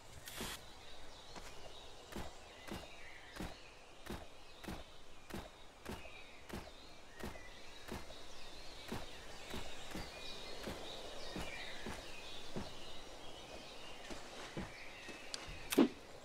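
Footsteps walk steadily through grass.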